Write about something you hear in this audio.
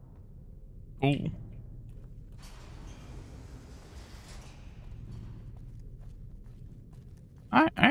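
A young man speaks briefly and loudly into a close microphone.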